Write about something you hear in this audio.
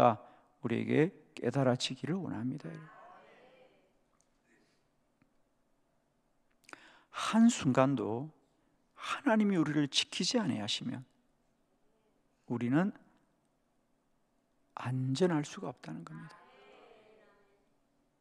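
An older man speaks calmly into a microphone, pausing between phrases, in a reverberant hall.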